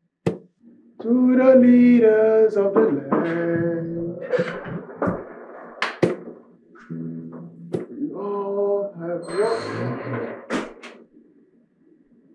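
A man sings along to a guitar.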